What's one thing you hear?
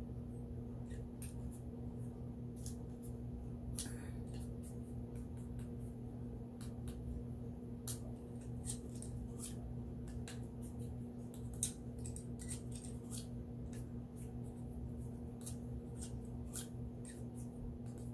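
Small tools click and tap softly.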